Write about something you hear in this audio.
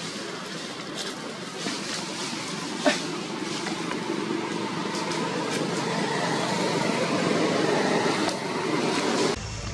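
Dry leaves rustle and crackle under a monkey's feet.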